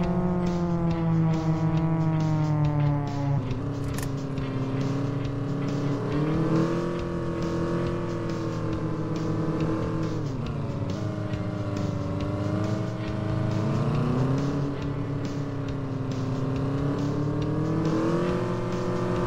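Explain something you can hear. A car engine hums steadily, its pitch rising and falling as it speeds up and slows down.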